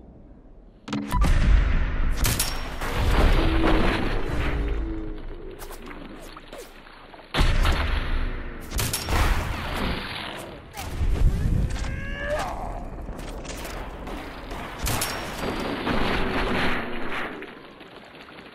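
Explosions boom and roar.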